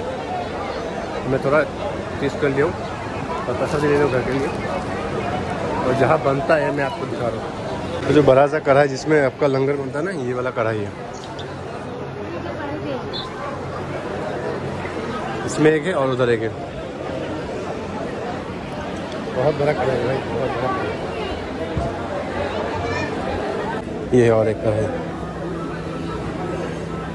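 A crowd murmurs and chatters nearby.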